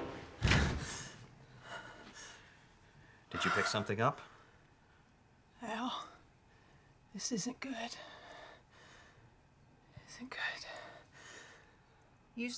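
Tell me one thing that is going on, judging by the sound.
A woman whispers urgently close by.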